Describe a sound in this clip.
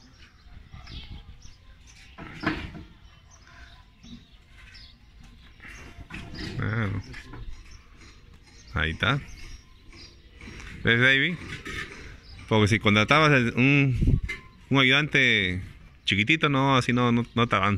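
Clay bricks clunk as a worker catches and stacks them.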